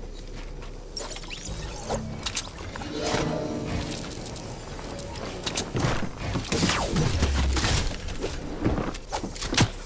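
Wooden walls are built with quick clattering thuds in a video game.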